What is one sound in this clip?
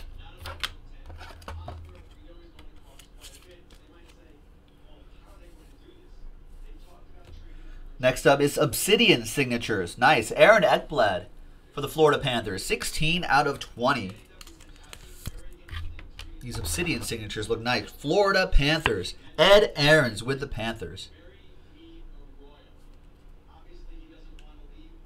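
Plastic card cases click and rustle in hands.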